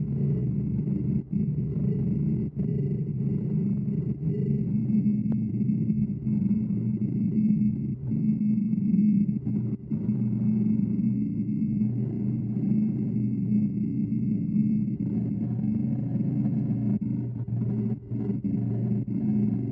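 A lathe hums steadily as it spins.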